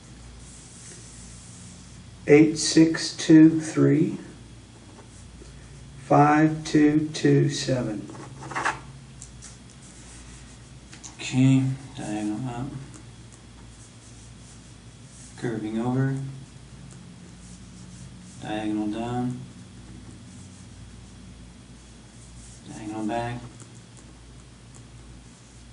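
A pen scratches softly across paper.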